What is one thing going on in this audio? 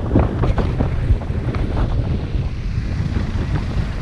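A car passes by in the other direction.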